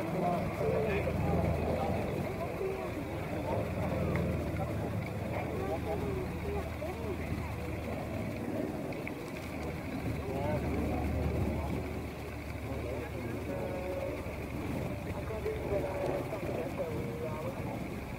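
A propeller airliner drones steadily overhead.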